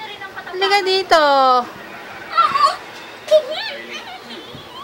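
A small child sings and babbles in a high voice close by.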